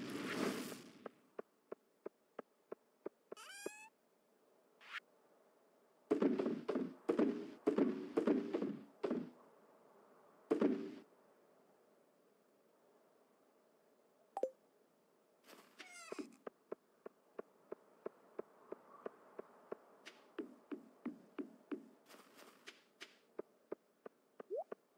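Footsteps crunch in a quick, even rhythm.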